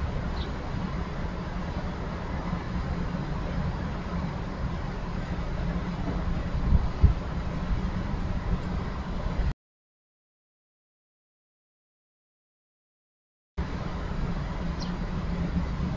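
Small birds chirp briefly outdoors.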